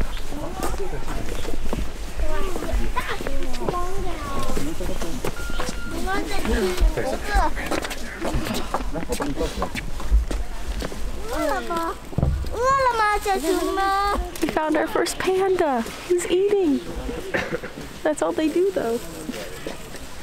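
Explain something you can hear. A young woman talks cheerfully and with animation, close by.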